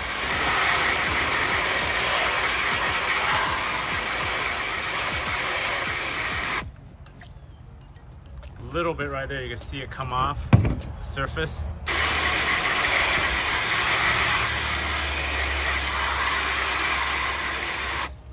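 Water sprays hard from a hose nozzle onto a metal object.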